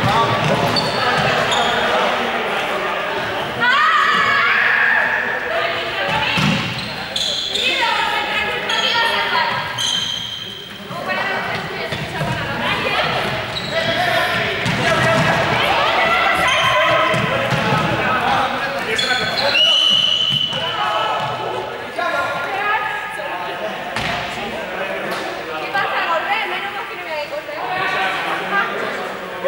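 Sneakers squeak and thump as players run on a hard floor.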